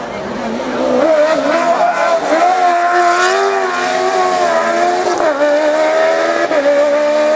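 A racing prototype sports car's engine screams at full throttle uphill.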